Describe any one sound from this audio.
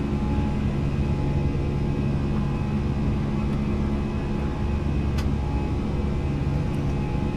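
A steady low airliner engine drone hums throughout.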